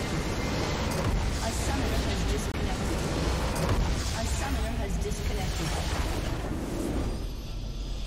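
A game structure explodes with a deep rumbling blast.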